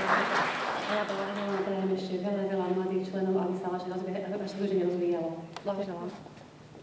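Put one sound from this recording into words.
A woman speaks calmly into a microphone, heard over loudspeakers in a large hall.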